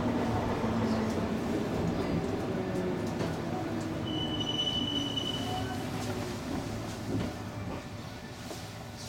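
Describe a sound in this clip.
A train's motors hum low and slowly wind down.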